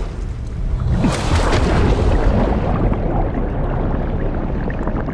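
Water rushes and churns as a body plunges under the surface.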